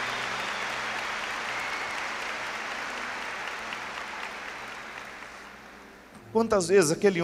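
An audience applauds and slowly fades.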